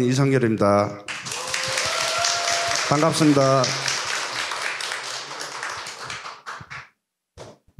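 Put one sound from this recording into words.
An audience applauds and then fades away.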